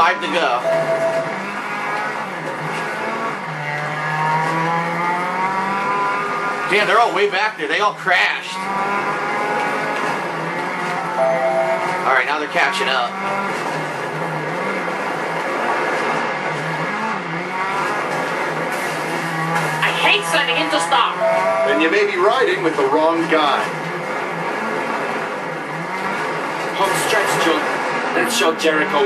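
A racing car engine roars and revs up and down steadily.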